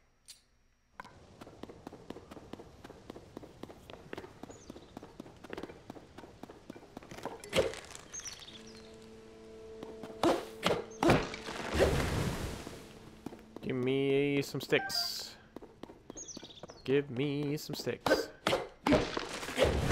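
Footsteps pad over rocky ground.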